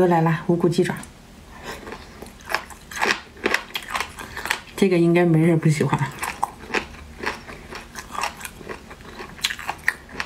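A young woman chews and slurps food noisily close to a microphone.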